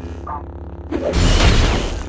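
A laser blast zaps loudly.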